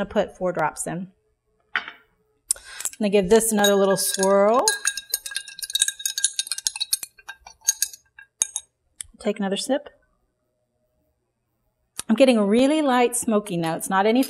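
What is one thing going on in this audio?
A woman talks calmly and clearly close by.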